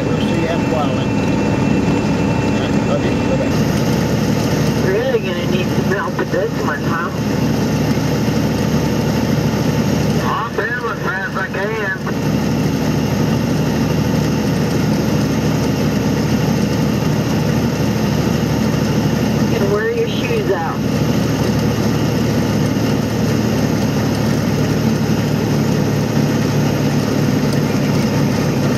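Tyres roll on a paved road with a steady rumble.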